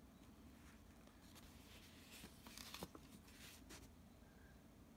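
Paper pages rustle as a hand turns them.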